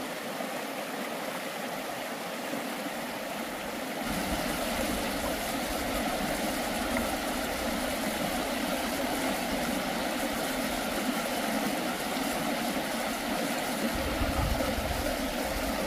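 A shallow river rushes steadily over rocks.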